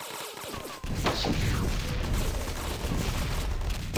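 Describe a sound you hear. A rocket explodes with a loud blast.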